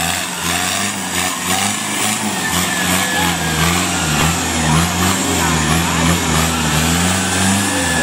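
A truck engine roars and labours as it revs.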